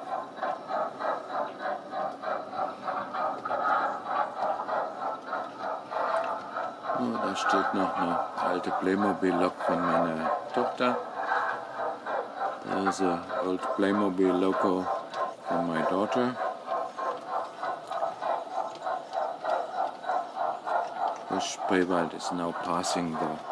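A model train's wheels clatter rhythmically over the track joints.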